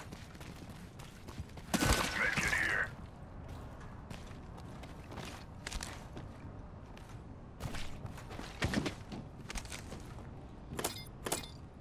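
Quick footsteps thud and clang as a game character runs over dirt and metal.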